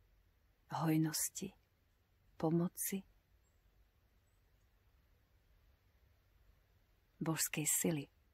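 A woman speaks calmly and softly, close by, in short phrases with pauses.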